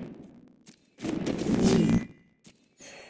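A magical whoosh and shimmer sound as a spell is cast.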